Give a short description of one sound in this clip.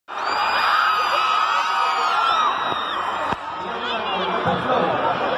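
A huge crowd screams and cheers in a large open stadium.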